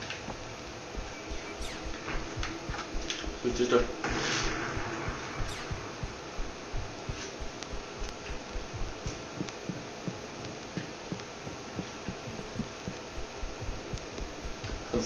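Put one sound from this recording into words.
Footsteps thud steadily along a hard floor.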